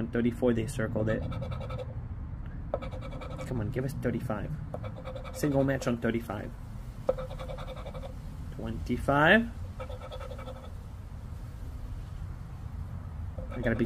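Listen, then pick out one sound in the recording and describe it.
A coin scratches across a card.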